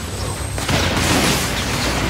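A fiery blast bursts with a loud boom.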